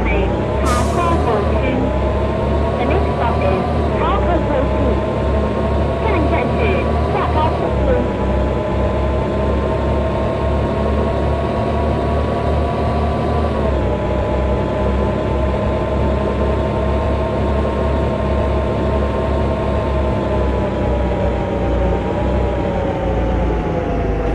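A bus engine hums steadily as it drives along, its pitch shifting with the gears.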